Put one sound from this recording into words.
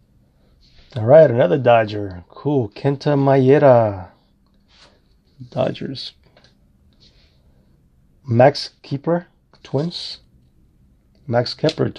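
Paper cards slide and flick softly as a hand flips through them.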